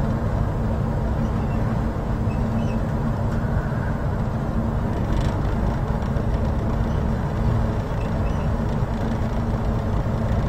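A boat's engine rumbles steadily and deeply.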